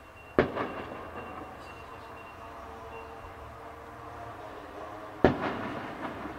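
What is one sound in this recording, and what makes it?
Fireworks explode with loud booming bangs that echo away.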